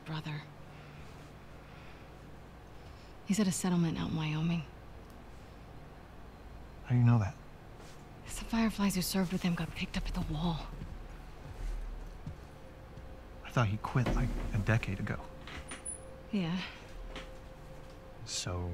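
A young woman speaks calmly and quietly.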